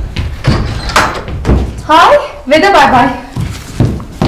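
An elderly woman speaks cheerfully close by.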